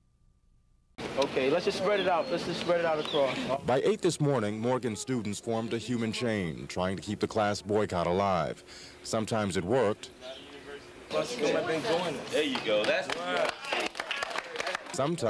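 Young men talk loudly outdoors.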